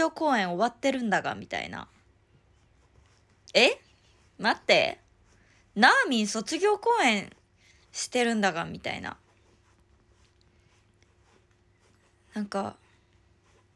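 A young woman speaks softly and close to a microphone, in short bursts with pauses.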